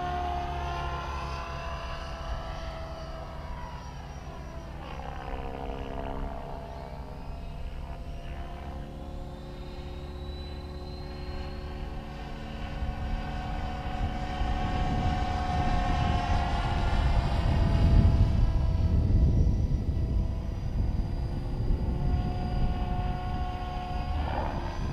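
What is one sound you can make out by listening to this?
Wind rushes and rumbles past, growing louder.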